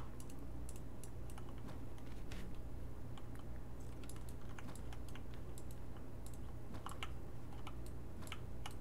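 Stone blocks are chipped with quick, repeated dry clicks.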